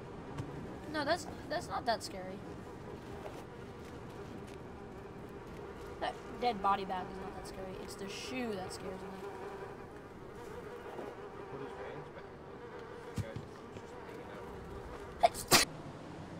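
A young boy talks and exclaims excitedly, close to a microphone.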